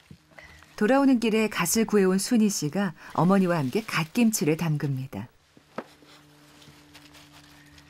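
Hands squelch as they knead wet, seasoned vegetables.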